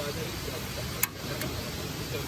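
A gas camping stove's igniter clicks.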